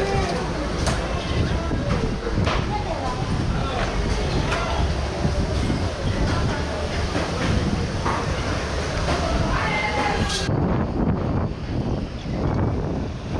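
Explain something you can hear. A crowd of people chatters at a distance.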